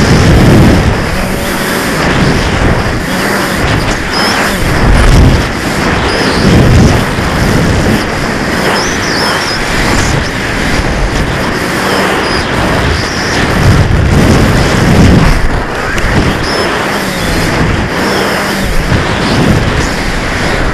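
Wind rushes and buffets loudly around a falling rocket.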